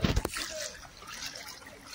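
A cow's hooves splash through shallow floodwater.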